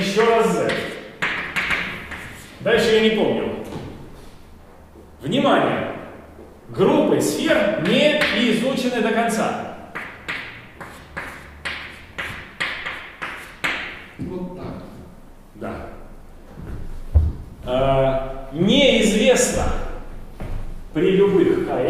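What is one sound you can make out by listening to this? A man lectures with animation in a room with some echo.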